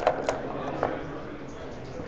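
Dice rattle in a leather cup.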